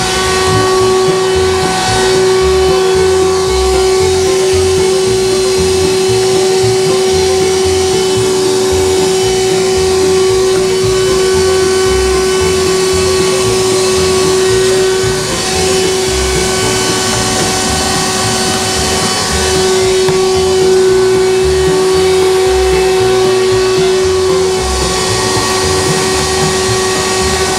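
A vacuum cleaner motor whines loudly and steadily nearby.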